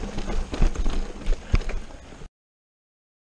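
Bicycle tyres rumble and rattle over rough sandy ground.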